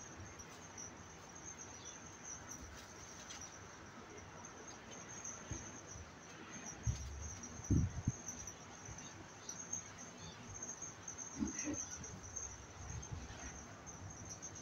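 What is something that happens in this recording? A kitten scuffles and paws on a soft blanket.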